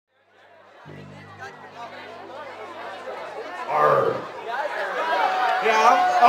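A crowd chatters close by.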